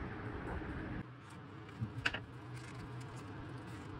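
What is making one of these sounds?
A cardboard box rustles and taps in someone's hands.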